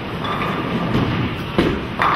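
A bowling ball thuds onto the lane and rolls.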